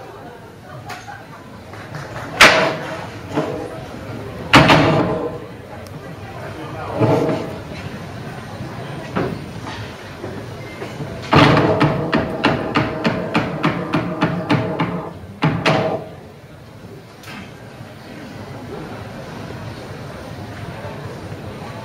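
Loud music with sharp, punchy beats plays through speakers in a large echoing hall.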